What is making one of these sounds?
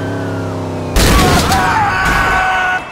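A car crashes into another car with a heavy bang.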